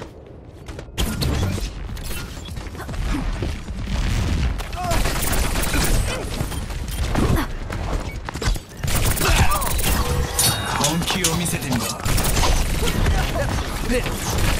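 Pistols fire in rapid, crackling bursts.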